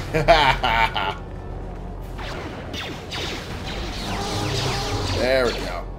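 Blaster shots fire in quick bursts.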